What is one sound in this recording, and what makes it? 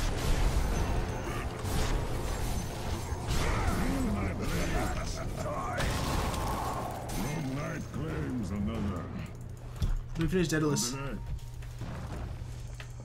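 Game spells whoosh and crackle.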